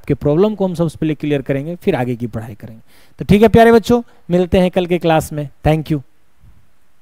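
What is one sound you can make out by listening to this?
A young man speaks with animation through a close microphone.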